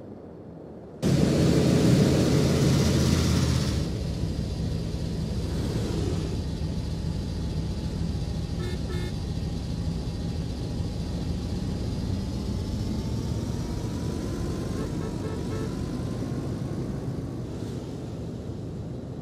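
A car engine hums steadily as cars drive by.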